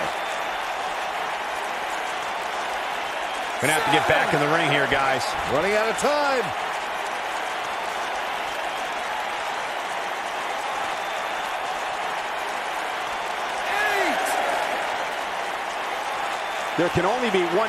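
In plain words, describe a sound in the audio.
A large arena crowd roars and cheers steadily.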